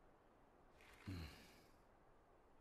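A second young man speaks quietly.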